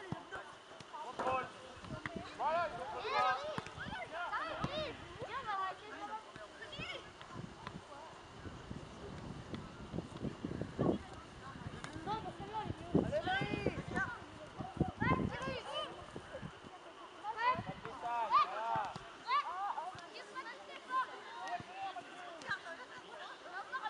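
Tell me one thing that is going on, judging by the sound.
Young boys shout and call to each other outdoors across an open field.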